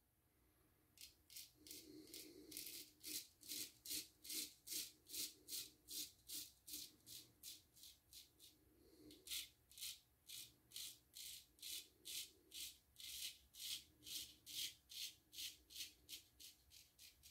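A razor blade scrapes softly over stubble in quick strokes.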